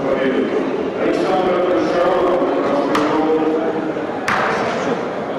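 A young man speaks into a microphone, heard over a loudspeaker.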